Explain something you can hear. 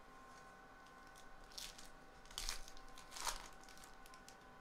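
A pack wrapper crinkles as it is torn open.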